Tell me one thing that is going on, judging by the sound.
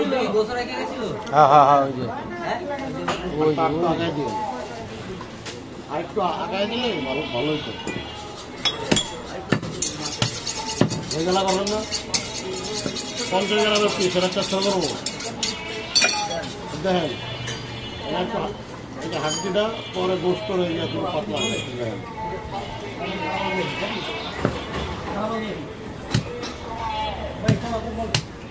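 A cleaver chops through meat and thuds onto a wooden block.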